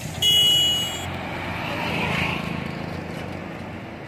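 A three-wheeled auto-rickshaw drives past.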